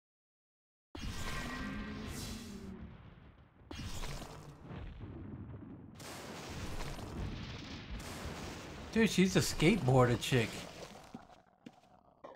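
A lightning strike crackles and booms.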